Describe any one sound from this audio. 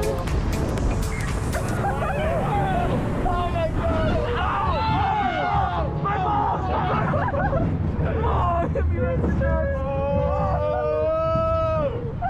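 A roller coaster car rumbles and rattles along its track.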